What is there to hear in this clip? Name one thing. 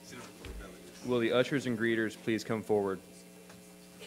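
A man speaks briefly through a microphone in a large hall.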